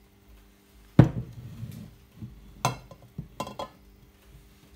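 A glass vase knocks down onto a countertop.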